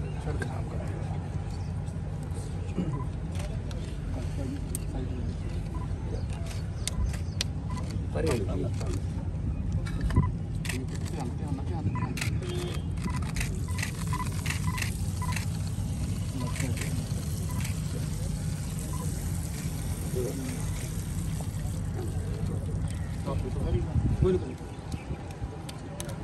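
A crowd of men murmurs and chatters nearby, outdoors.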